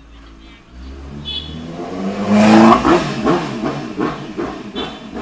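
A motorcycle engine revs loudly as it passes close by.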